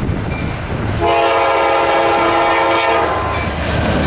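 A diesel locomotive horn blares loudly.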